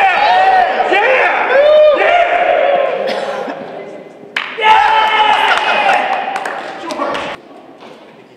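Several men laugh and cheer loudly in an echoing hall.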